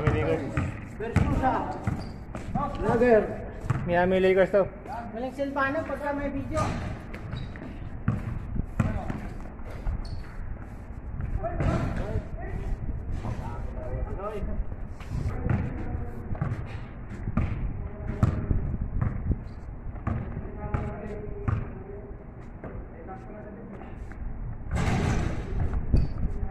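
A basketball bounces on hard ground outdoors.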